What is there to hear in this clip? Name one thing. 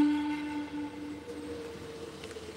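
A wooden flute plays close to a microphone.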